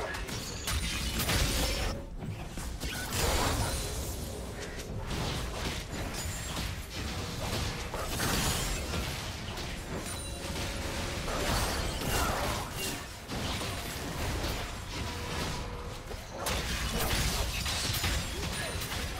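Fantasy battle sound effects of spells and weapon strikes crackle and thud.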